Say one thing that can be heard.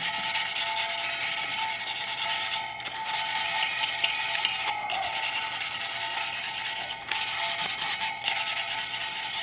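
A stiff brush scrubs rapidly against a metal wheel.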